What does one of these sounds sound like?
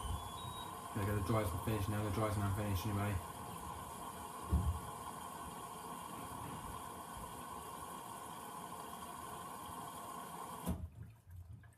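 A washing machine hums steadily, then abruptly goes quiet.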